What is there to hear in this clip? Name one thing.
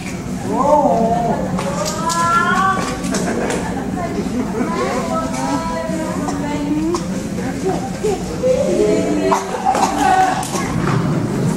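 A woman speaks with animation in an echoing hall.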